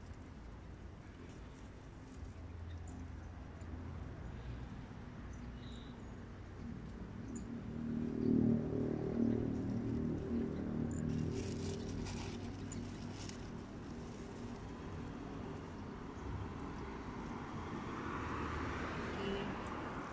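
Leaves rustle as branches are pulled and shaken.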